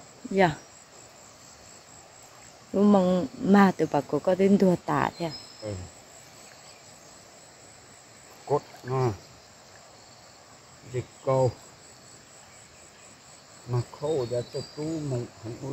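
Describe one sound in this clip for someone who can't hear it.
A fish splashes in shallow water.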